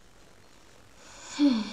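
A boy speaks briefly close to a microphone.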